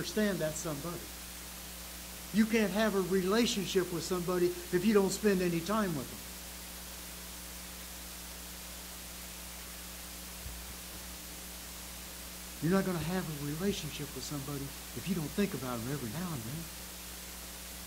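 An elderly man speaks calmly and slowly through a microphone, with long pauses.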